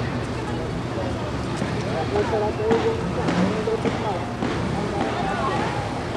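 Boots of marching soldiers tramp on pavement.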